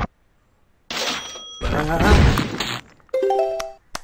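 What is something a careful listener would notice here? A stone wall crumbles and collapses with a crash.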